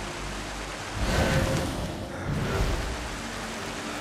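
Rocks crash and rumble as a wall collapses.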